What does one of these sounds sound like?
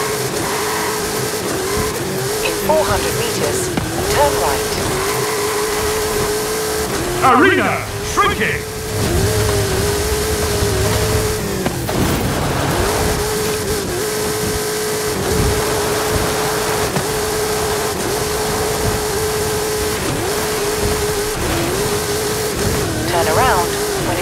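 A racing car engine drones at high revs, dipping briefly with each gear change.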